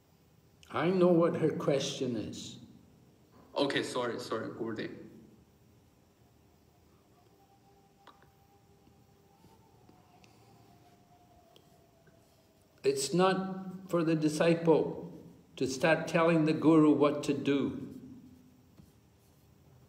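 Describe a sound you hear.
An elderly man speaks close to the microphone in slow, tired bursts with pauses between them.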